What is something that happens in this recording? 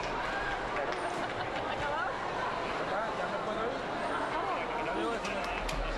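A large crowd chatters loudly in an echoing hall.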